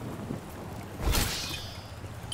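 A game character lands with a thud.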